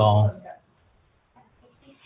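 A man sips a drink from a cup.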